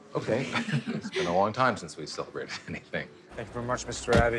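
A young woman speaks cheerfully and laughs close by.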